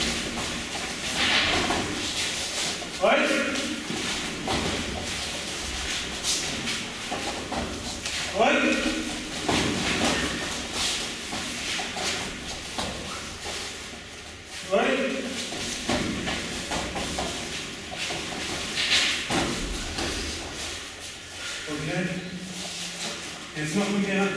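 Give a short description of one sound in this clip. Bare feet thud and shuffle on a padded floor mat.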